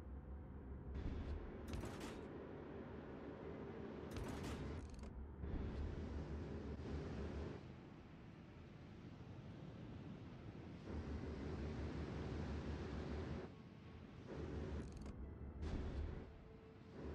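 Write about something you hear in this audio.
Ship guns fire in sharp bursts.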